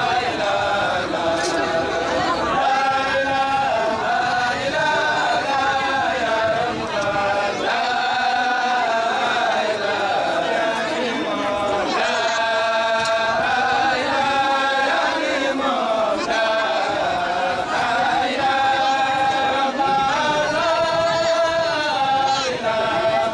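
A group of men chant together in long, sustained tones.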